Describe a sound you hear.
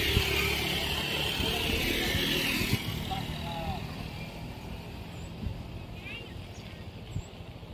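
A scooter engine idles close by.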